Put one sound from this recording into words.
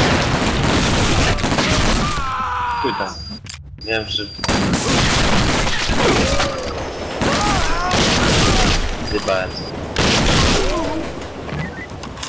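Automatic gunfire rattles loudly in bursts.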